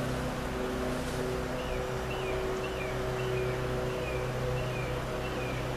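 An older man hums a low, steady tone close by.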